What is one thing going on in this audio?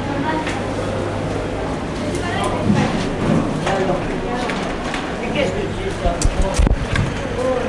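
A shopping trolley's wheels rattle over the floor.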